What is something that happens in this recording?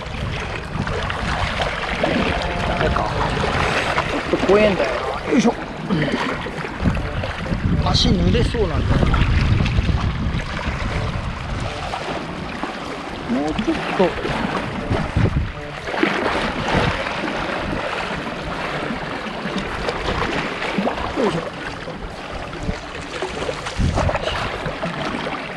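Small waves lap and splash against rocks close by.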